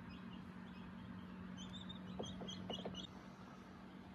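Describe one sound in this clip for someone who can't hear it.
An incubator fan hums steadily.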